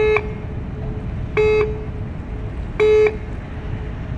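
A ship's horn sounds three short, loud blasts.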